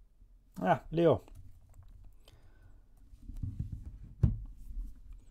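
Cards are shuffled and laid on a table.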